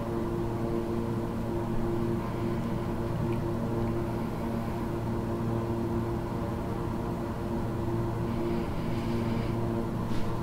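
Jet engines hum steadily.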